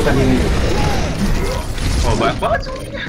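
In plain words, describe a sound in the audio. Weapons fire and clatter with loud battle effects in a video game.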